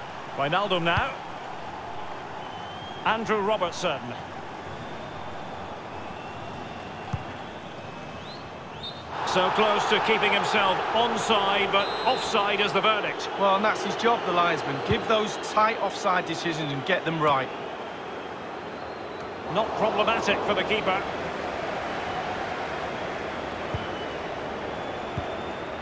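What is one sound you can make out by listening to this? A large stadium crowd murmurs and cheers steadily in the background.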